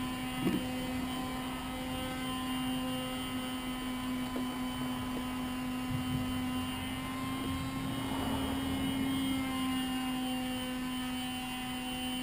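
Small metal tools click and scrape against a chainsaw.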